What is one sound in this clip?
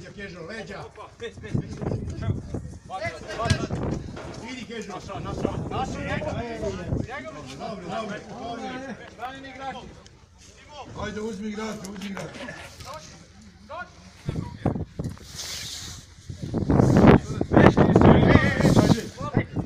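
Men talk and call out close by, outdoors.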